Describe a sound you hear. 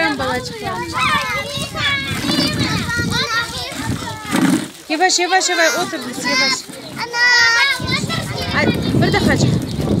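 Children chatter and call out excitedly close by.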